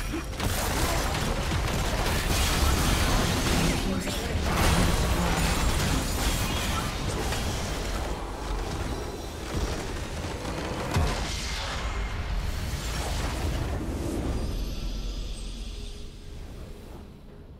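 Game spell effects crackle and blast in a busy battle.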